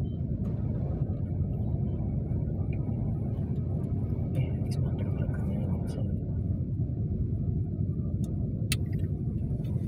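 A car engine idles with a low rumble from inside the car.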